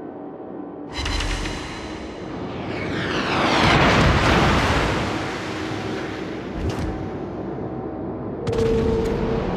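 Naval guns fire with deep booming blasts.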